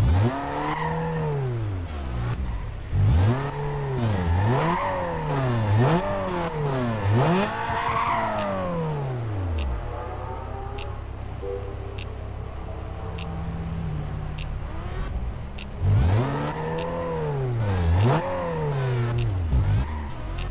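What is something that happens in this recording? A racing car engine revs hard, rising and falling again and again.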